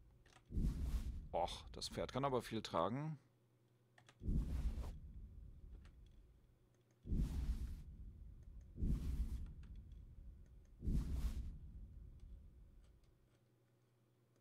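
Soft whooshing interface sounds swell and fade as a menu opens and closes, several times.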